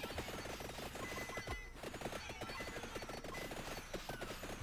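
Small game chimes ring now and then.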